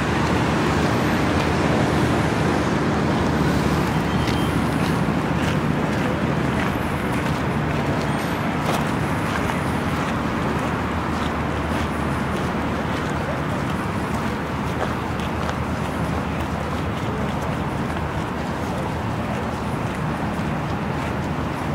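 Wind blows steadily and rumbles outdoors.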